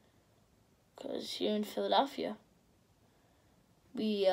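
A boy speaks calmly and close by.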